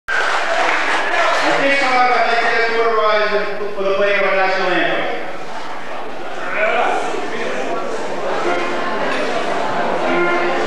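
A man speaks into a microphone, heard through a loudspeaker in an echoing hall.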